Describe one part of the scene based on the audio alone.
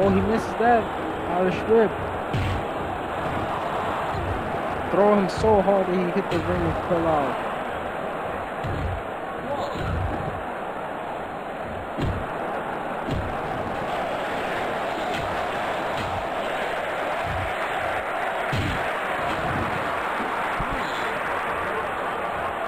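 A large crowd cheers steadily in an arena.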